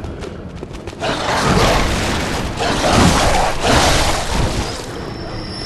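A blade swings and slashes through the air.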